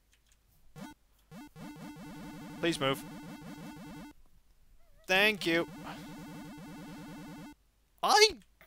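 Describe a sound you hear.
Buzzy retro video game tones play in short bursts.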